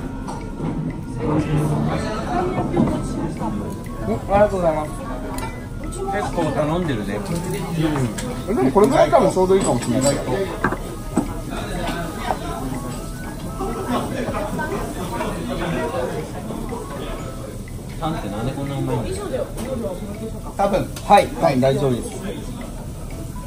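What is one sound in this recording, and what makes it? Metal tongs clink against a plate.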